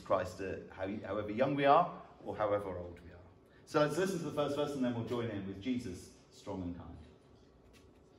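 A man speaks calmly into a microphone over a loudspeaker in a large echoing hall.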